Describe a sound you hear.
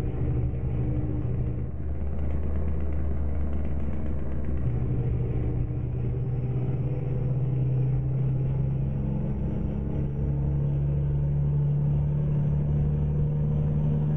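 A truck's diesel engine rumbles steadily from inside the cab, its pitch slowly rising as it speeds up.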